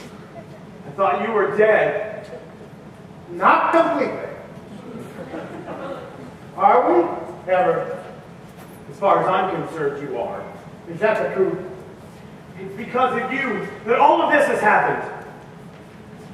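A man sings loudly in a large echoing hall.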